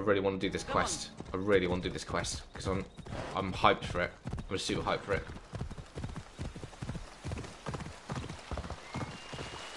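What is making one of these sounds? A horse's hooves thud in a quick, steady beat.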